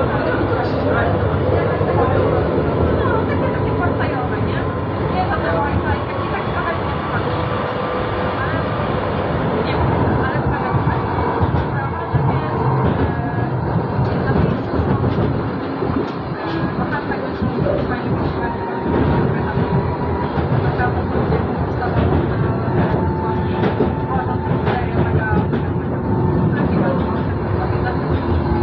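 A tram rumbles steadily along rails.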